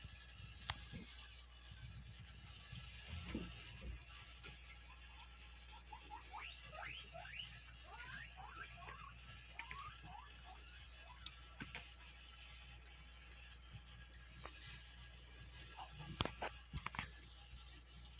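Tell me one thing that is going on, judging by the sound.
A cat scuffles and kicks at a toy on a soft blanket.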